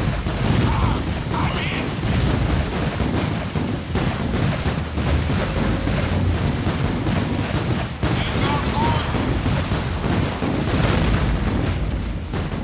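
Turrets fire rapid bursts of gunfire.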